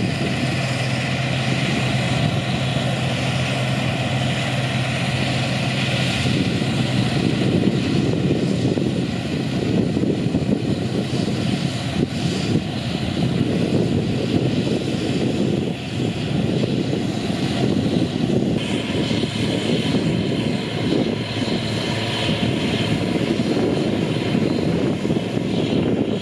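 A combine harvester rustles and threshes through ripe wheat.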